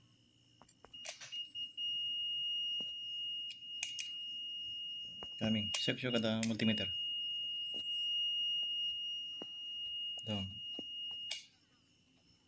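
A multimeter beeps with a steady high tone.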